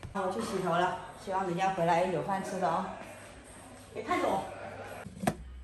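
A young woman speaks casually nearby.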